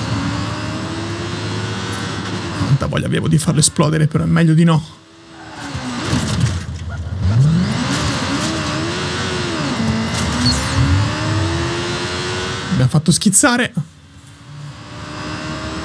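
A motorcycle engine revs and hums, rising and falling in pitch.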